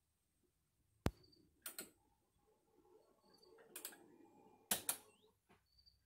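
Arcade buttons click sharply a few times.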